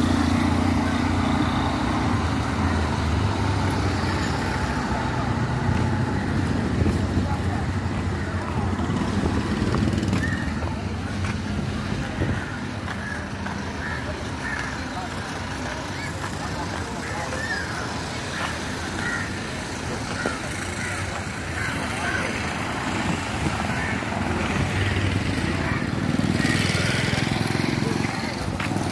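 An auto-rickshaw engine putters nearby.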